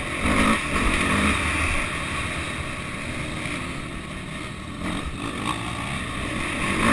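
A dirt bike engine roars up close, revving up and down.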